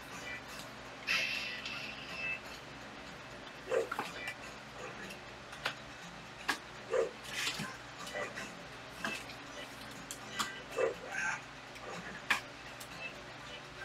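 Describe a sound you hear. Video game music and sound effects play from a television nearby.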